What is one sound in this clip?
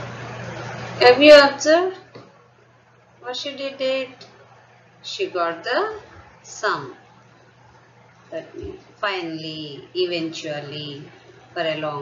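A woman explains calmly over an online call.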